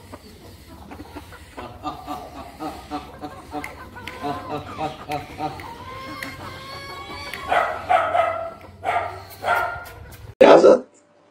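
Chickens cluck and squawk nearby.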